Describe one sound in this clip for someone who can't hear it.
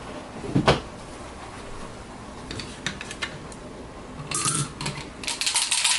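A small cardboard box scrapes and knocks lightly on a table.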